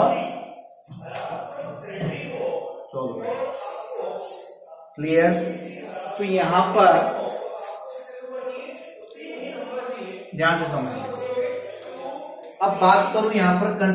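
A man explains steadily and clearly, close to a microphone.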